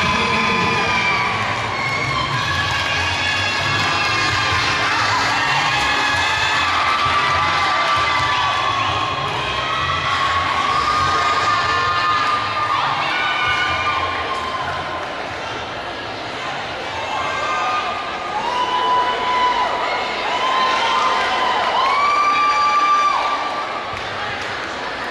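Music with a singing voice plays through loudspeakers in a large echoing hall.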